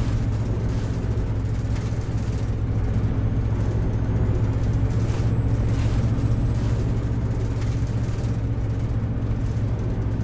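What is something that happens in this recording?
A bus engine hums steadily with a low drone.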